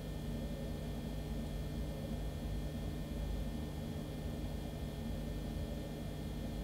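Water rushes down steadily with a low, constant roar.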